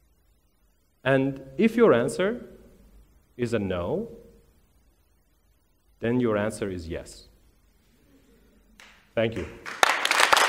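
A man speaks calmly into a microphone on a stage.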